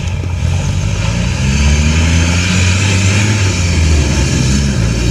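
A large off-road vehicle's engine revs louder as the vehicle drives off.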